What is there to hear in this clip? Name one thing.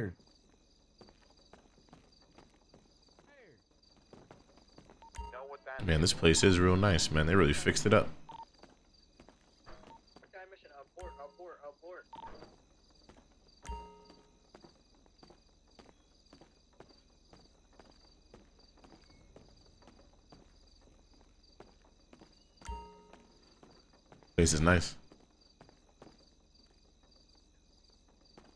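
Footsteps tap on a wooden floor indoors.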